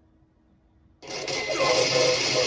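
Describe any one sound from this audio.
A computer game bursts into loud action sounds.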